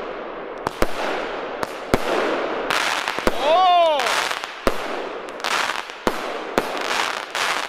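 Fireworks bang sharply outdoors, one after another.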